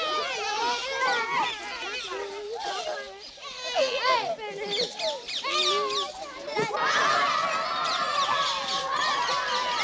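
Young children shout and shriek excitedly close by.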